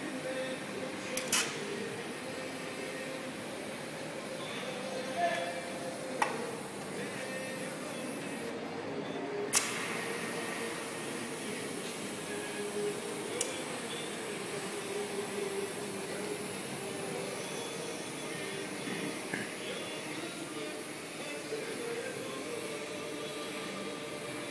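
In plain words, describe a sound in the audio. A TIG welding arc hisses and buzzes on stainless steel.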